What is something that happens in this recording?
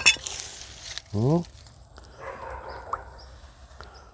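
Dry leaves and soil rustle under a hand.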